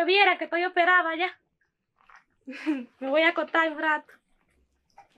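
A young woman talks with excitement close by.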